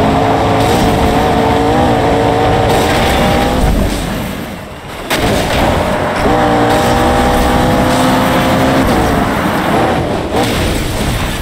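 A car engine roars at high revs.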